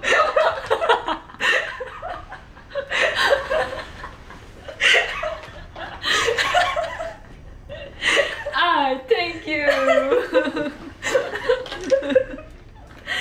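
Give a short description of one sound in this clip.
Two young women laugh loudly close by.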